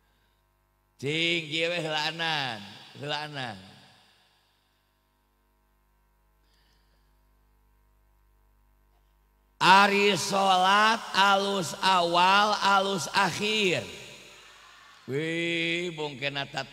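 A middle-aged man chants and speaks with passion through a microphone, in bursts broken by pauses.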